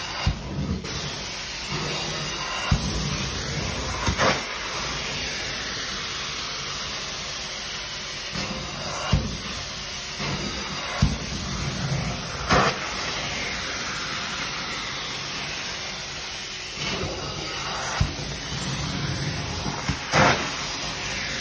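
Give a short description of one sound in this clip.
A cleaning wand scrapes and thumps against carpeted stairs.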